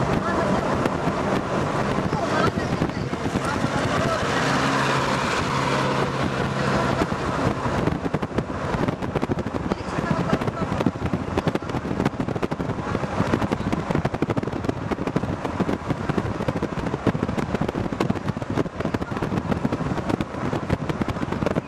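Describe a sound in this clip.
Wind buffets loudly through an open window.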